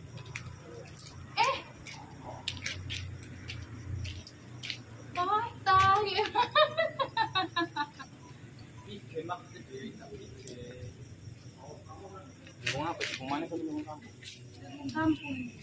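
Corn husks rustle and tear as hands peel them.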